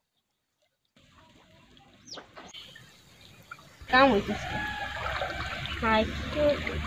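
Water splashes as a boy wades through it.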